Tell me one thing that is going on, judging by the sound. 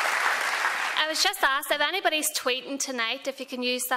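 A young woman speaks calmly into a microphone in a large hall.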